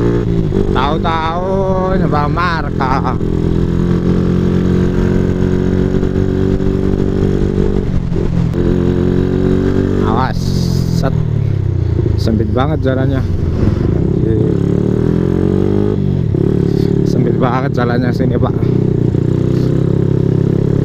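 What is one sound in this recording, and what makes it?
A motorbike engine hums steadily and revs up and down while riding.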